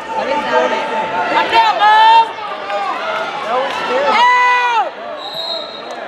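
A crowd of spectators shouts and cheers loudly in an echoing gym.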